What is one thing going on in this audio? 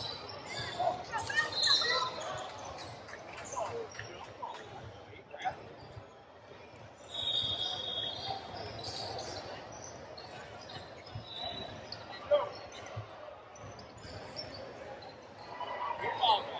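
Young players shout and call out to each other across the gym.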